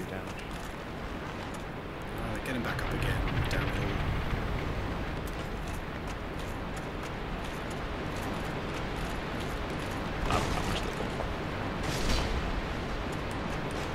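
Armoured footsteps crunch on gravel.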